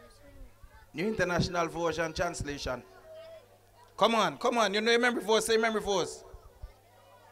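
A boy speaks loudly into a microphone over a loudspeaker.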